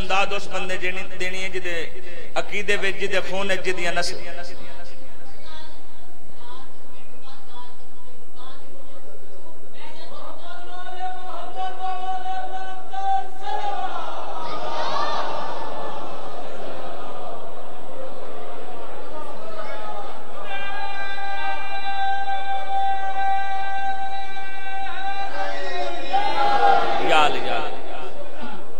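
A young man chants loudly and with feeling through a microphone.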